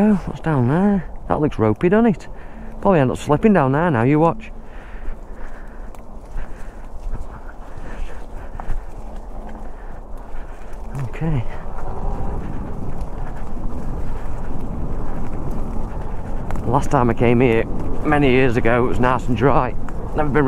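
Bicycle tyres roll and crunch over dirt and dry leaves.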